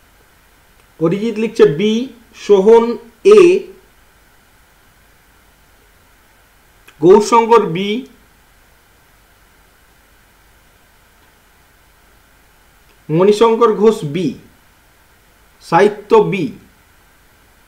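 A man speaks calmly in short bursts, close to a microphone.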